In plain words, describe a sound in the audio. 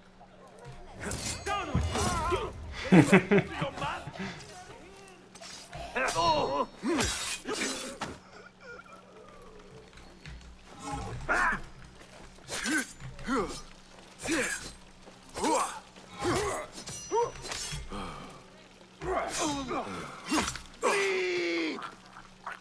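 Blades strike and clash in a close fight.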